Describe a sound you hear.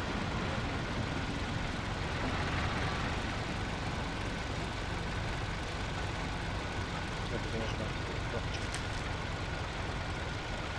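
An old car engine rumbles steadily as the car drives along.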